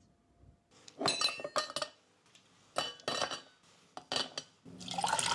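Ice clinks in a cup.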